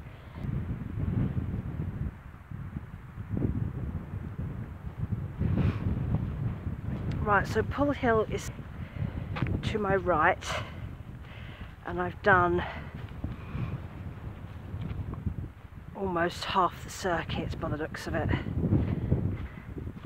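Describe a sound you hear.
Wind blows and rumbles across open ground.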